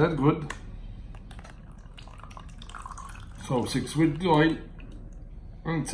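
Liquid trickles into a plastic cup.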